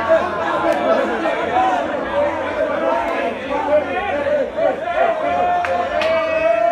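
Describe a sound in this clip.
A crowd of young men talks and shouts over each other, close by.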